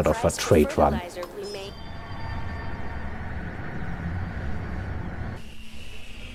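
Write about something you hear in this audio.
A spaceship engine roars with a low, steady rumble.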